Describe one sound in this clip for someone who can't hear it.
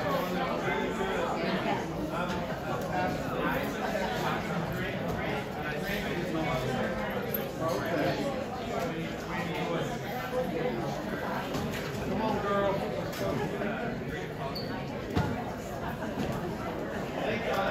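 Elderly men and women chat together in a room with a slight echo.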